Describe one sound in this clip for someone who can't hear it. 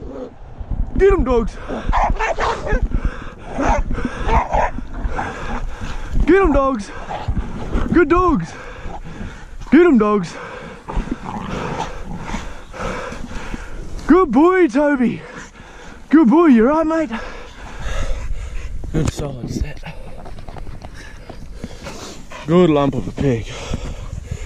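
A dog yelps and whines in high bursts.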